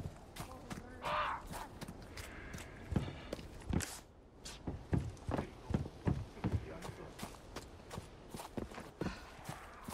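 Footsteps tread steadily on wooden boards.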